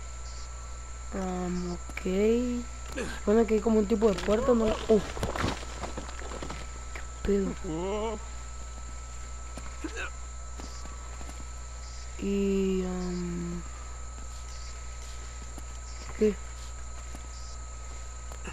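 Footsteps crunch on stone and leaves.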